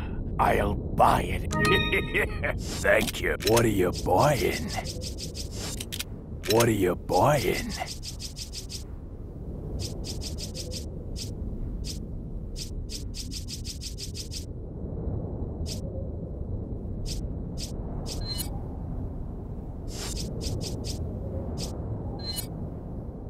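Soft menu clicks tick as a selection moves through a list.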